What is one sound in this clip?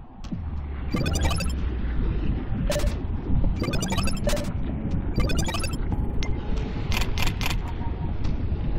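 Menu selections click and chime in quick bursts.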